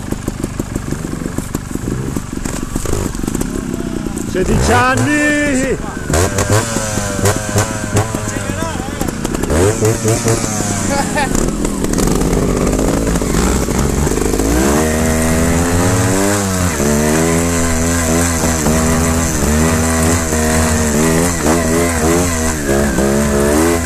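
A motorcycle engine idles and revs up and down close by.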